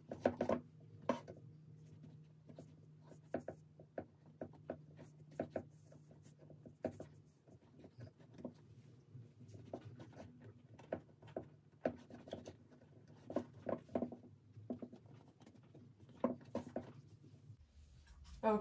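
Bootlaces click and rustle as they are pulled through metal eyelets.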